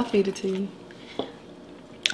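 A woman slurps and sucks on crab meat.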